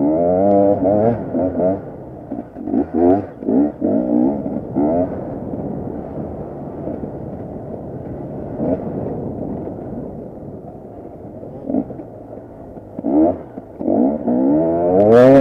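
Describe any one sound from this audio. A two-stroke enduro motorcycle revs hard in bursts as it climbs a rough dirt trail.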